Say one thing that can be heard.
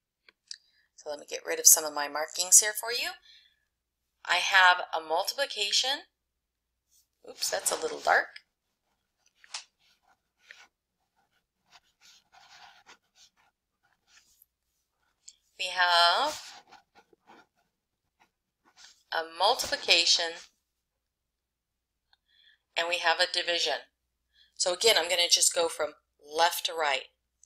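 A middle-aged woman speaks calmly into a close microphone, in short bursts with pauses.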